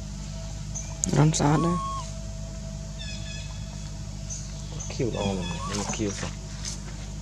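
A young monkey gives short squeaky calls.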